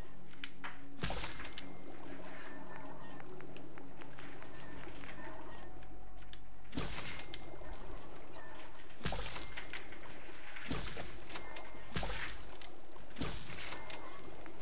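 A short whooshing crafting sound plays in a game menu several times.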